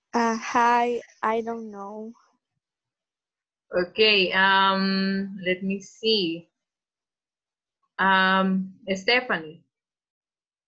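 A young woman speaks with animation over an online call.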